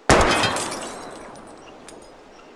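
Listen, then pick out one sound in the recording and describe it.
A gunshot rings out and echoes away.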